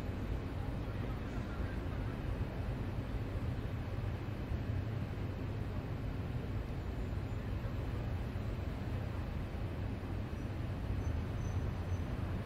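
A train's engine hums low and steady while standing still.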